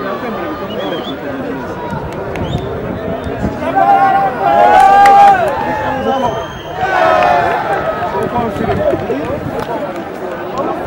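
A crowd of spectators chatters and shouts outdoors.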